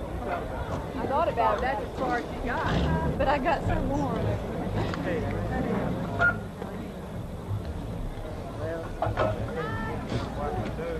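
Men's voices chatter and call out together outdoors.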